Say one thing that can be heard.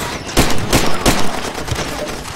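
Pistol shots ring out in quick succession.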